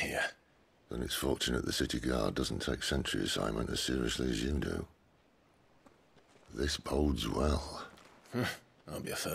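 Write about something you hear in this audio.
A second man answers in a deep, wry voice, close by.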